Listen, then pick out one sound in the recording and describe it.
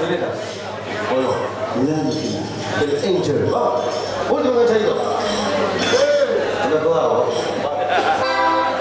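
An accordion plays a lively tune.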